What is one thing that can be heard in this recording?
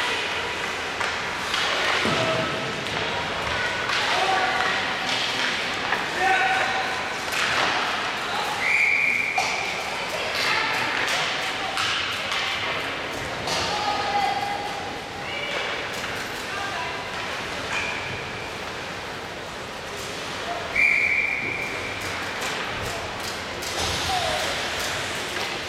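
Hockey sticks clack against a puck and the boards.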